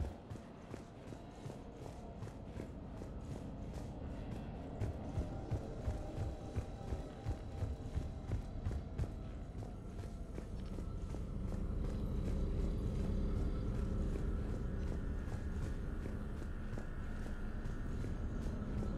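Footsteps run quickly and steadily on a hard floor.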